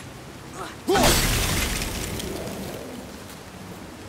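A cloud of gas bursts out with a fading hiss.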